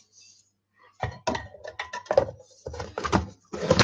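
A hand-operated food chopper clacks as it is pumped.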